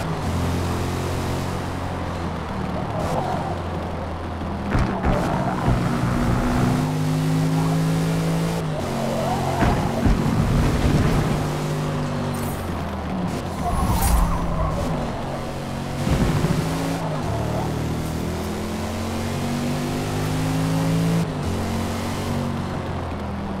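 A car engine roars and revs up and down as the gears change.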